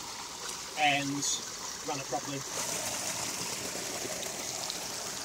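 Water splashes and gurgles steadily over a small fall close by.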